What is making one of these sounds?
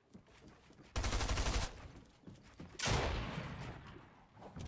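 Game effects clatter and crash in loud bursts.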